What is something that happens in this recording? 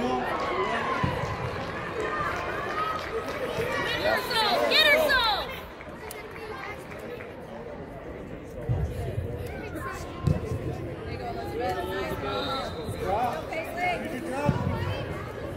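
A soccer ball is kicked with dull thuds.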